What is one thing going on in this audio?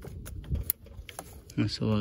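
A plastic electrical connector clicks as fingers handle it.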